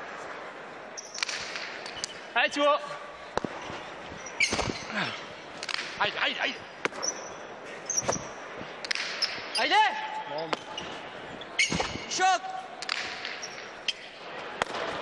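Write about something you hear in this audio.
A hard ball smacks against a wall and echoes through a large hall.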